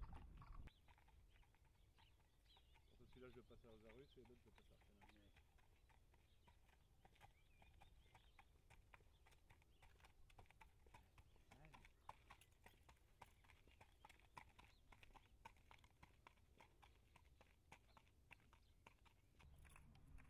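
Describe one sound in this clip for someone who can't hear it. A horse's hooves clop on a paved road as the horse walks.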